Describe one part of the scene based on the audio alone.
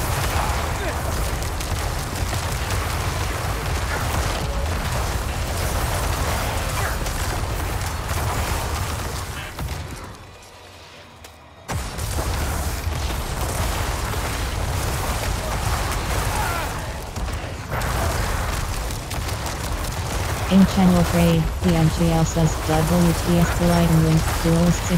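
Spells blast and crash in a noisy fight, with dense booming impacts.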